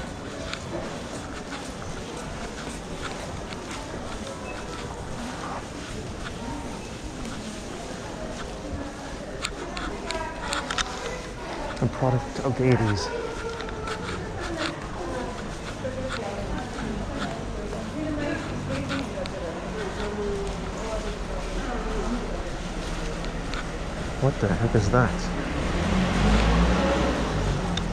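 Voices of people murmur in the background in a large covered space.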